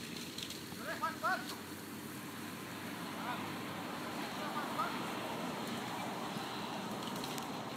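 Leafy branches drag and rustle across grass.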